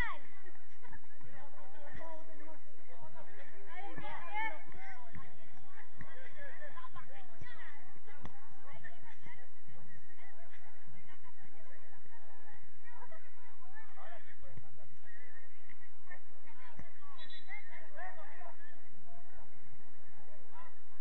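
Young players shout and call to each other, heard from a distance outdoors.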